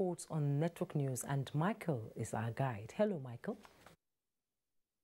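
A woman speaks clearly and calmly into a microphone.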